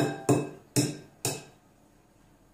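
An egg taps sharply against a ceramic bowl.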